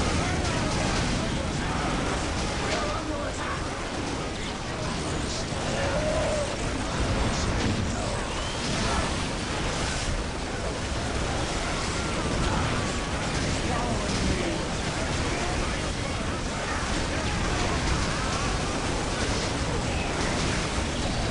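Explosions boom and thud.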